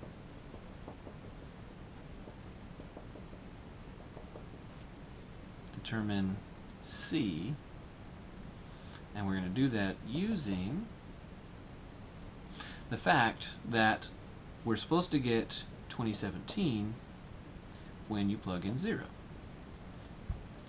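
A pen scratches on paper as it writes.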